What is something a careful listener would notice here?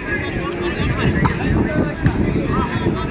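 A player spikes a volleyball with a sharp slap.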